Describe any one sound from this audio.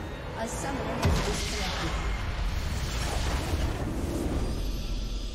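A loud magical blast booms and crackles, then fades.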